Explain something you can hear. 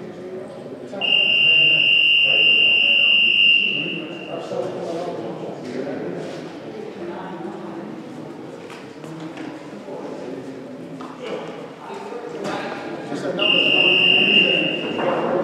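A referee's whistle blows long and shrill in an echoing gym.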